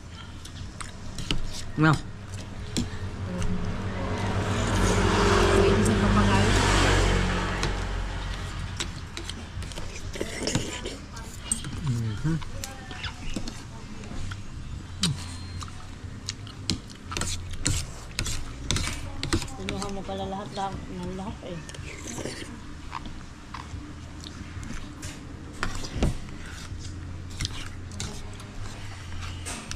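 A man slurps noodles loudly close by.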